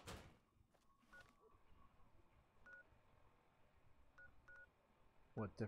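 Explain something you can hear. Short electronic beeps chirp.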